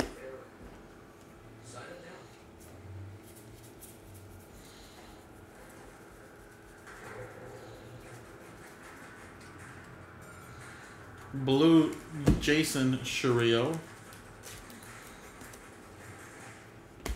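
Trading cards rustle and flick softly as a hand shuffles through them.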